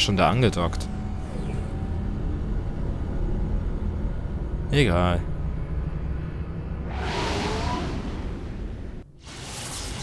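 A large craft's engines rumble low and steady.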